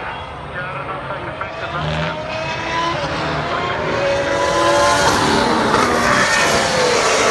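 A single-seater racing car's engine whines as the car approaches, growing louder.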